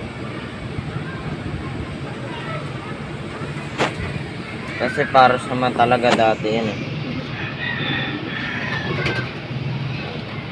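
A pigeon coos softly close by.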